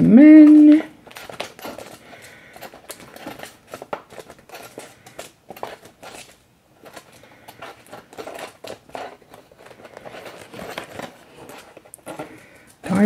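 Paper packets rustle and flick as fingers leaf through them.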